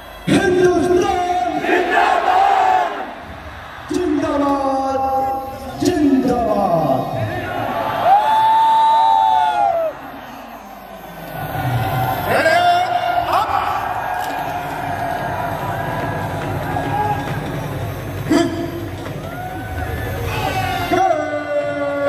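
A large crowd cheers and chants loudly outdoors.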